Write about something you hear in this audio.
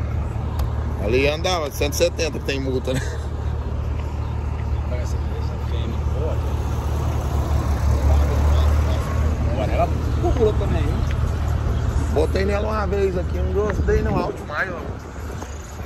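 A man talks excitedly near the microphone.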